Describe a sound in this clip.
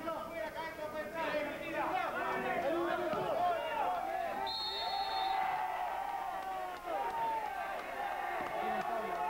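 A crowd of spectators chatters and shouts loudly outdoors.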